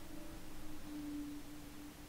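Distant shells splash into the sea.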